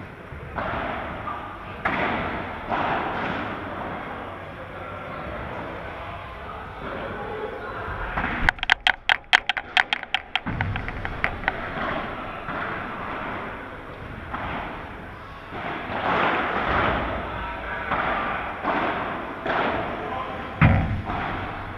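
Paddles strike a ball with sharp pops that echo in a large hall.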